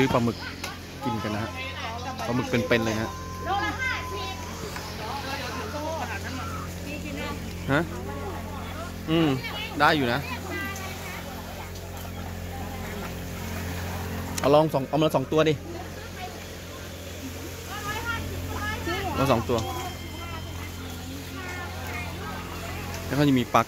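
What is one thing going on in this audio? Several adults and children chatter nearby outdoors.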